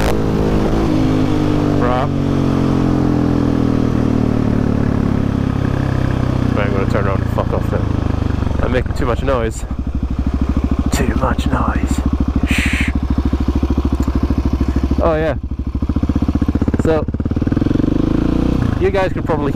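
A dirt bike engine revs hard and shifts gears at speed.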